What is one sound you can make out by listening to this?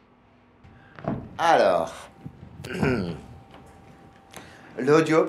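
An elderly man cries out loudly in a wavering, emotional voice.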